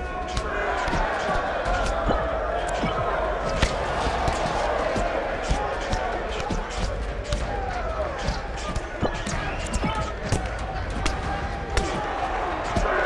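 Punches land with sharp, heavy thuds.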